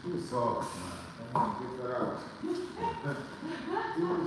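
Shoes step on a wooden floor.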